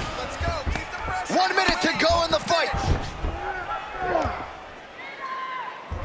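Punches thud dully against a body.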